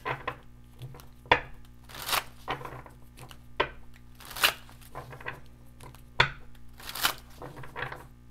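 Hands shuffle a deck of cards with quick riffling and slapping sounds.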